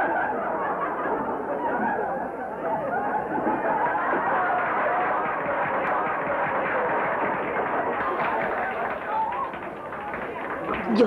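A crowd chatters and laughs loudly.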